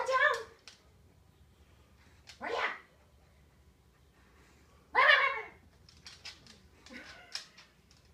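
A dog barks in short, sharp bursts.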